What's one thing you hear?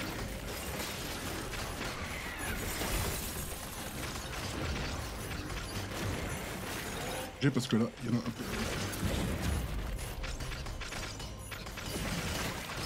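Ice spells crackle and shatter in bursts.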